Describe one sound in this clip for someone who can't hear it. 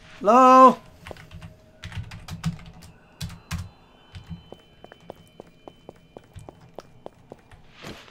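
Footsteps tread steadily on dry dirt.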